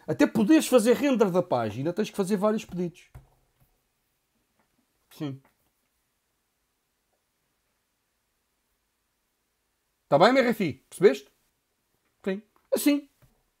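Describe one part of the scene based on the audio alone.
A man speaks with animation into a close microphone, pausing between phrases.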